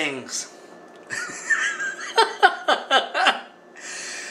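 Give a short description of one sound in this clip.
An elderly man laughs.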